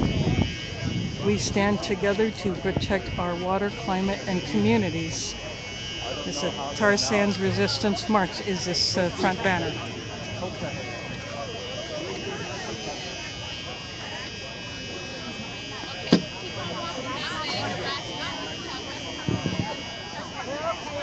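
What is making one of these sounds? A crowd murmurs and chatters in the open air.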